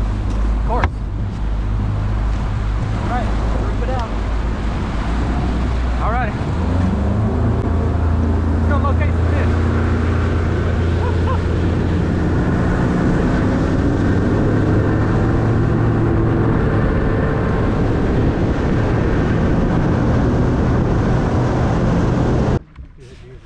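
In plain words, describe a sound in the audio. A boat motor hums steadily.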